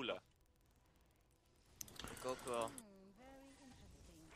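Magic spells whoosh and chime in a video game battle.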